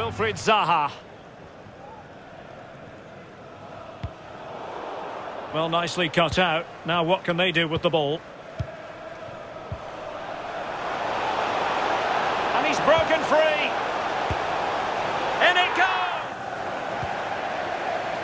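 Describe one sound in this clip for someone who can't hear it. A large stadium crowd murmurs and roars, swelling louder.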